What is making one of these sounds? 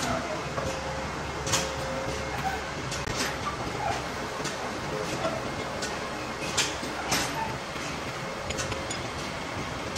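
Metal levers clunk and click on a vertical lathe.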